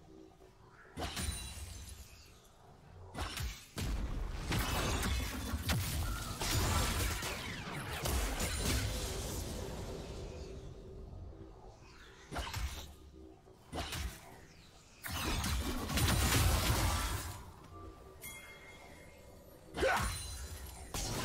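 Magic blasts burst and crackle in a video game.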